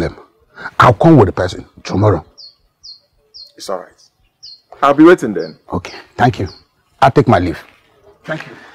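A middle-aged man speaks with animation close by.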